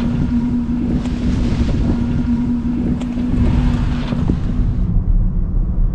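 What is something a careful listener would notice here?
A car rolls slowly past on pavement with a soft high whine.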